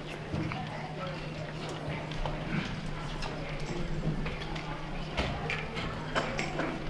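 An audience murmurs quietly in a large hall.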